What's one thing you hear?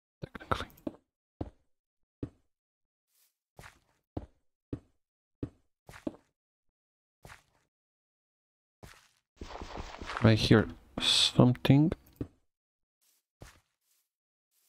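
Footsteps thud softly on dirt and grass.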